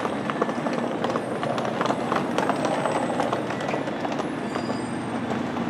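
A train rolls in and slows to a stop with a low rumble.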